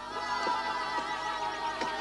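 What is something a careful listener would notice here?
A girl shouts and calls out from below.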